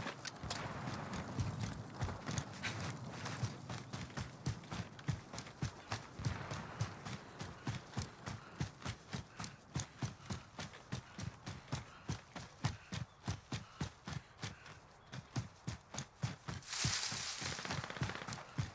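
Footsteps thud quickly and steadily as someone runs over grass.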